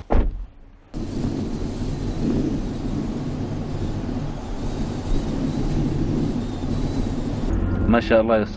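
A car drives along a road with a steady rumble.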